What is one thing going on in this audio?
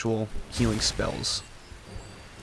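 A magic spell bursts with a bright, crackling whoosh.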